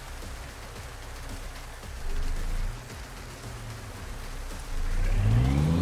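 A heavy truck engine idles with a low rumble.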